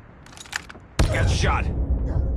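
A sniper rifle fires with a loud, booming crack.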